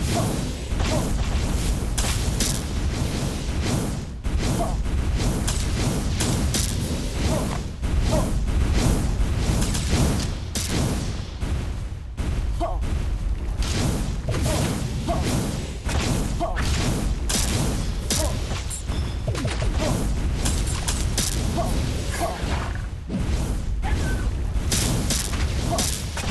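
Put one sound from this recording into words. Game explosions burst rapidly and loudly, one after another.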